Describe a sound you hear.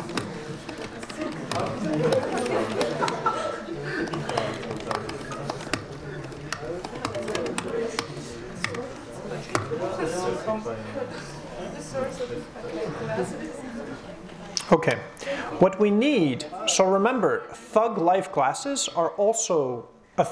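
A young man lectures calmly through a microphone in a large room.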